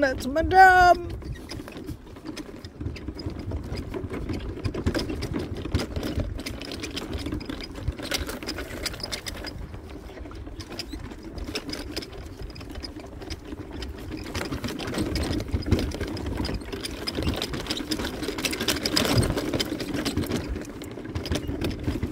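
An electric scooter motor hums steadily while driving.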